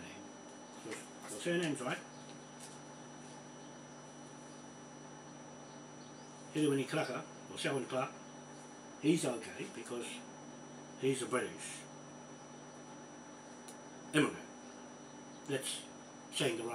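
A man speaks in short bursts close by.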